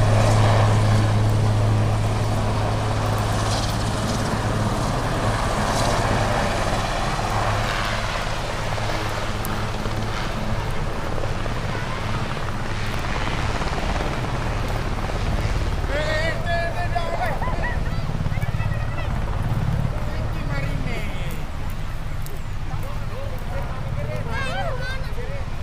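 A helicopter's rotors thrum in the distance.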